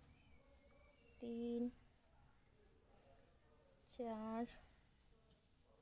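Yarn rustles softly as a crochet hook pulls it through loops.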